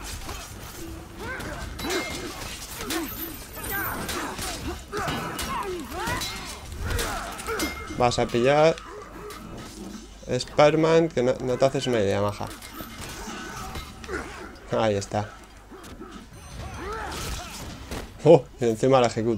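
Swords clash and clang repeatedly in a battle.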